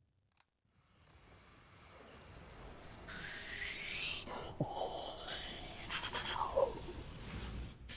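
Large spaceship engines roar and whoosh past.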